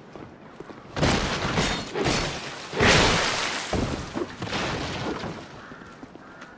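Wooden barricades smash and splinter loudly.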